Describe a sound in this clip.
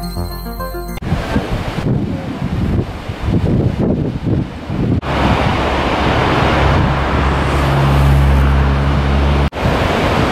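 A large waterfall roars steadily nearby.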